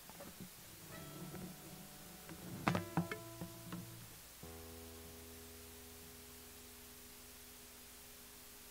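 Guitar notes ring out and slowly fade.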